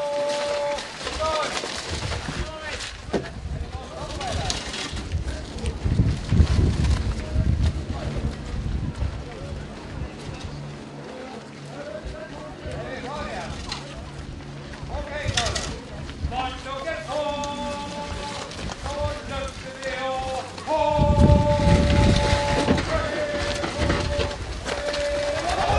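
A crowd of men and women calls out and talks outdoors.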